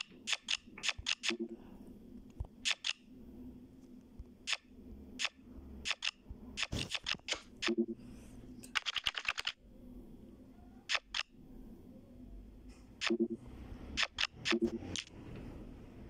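Playing cards snap into place with short, sharp clicks.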